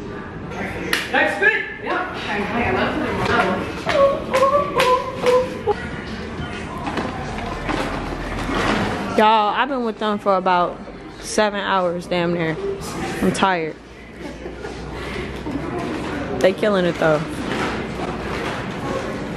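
Young women talk and laugh with animation nearby.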